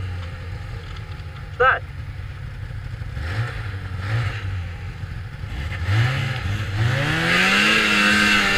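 A snowmobile engine idles close by, then revs up and rises in pitch.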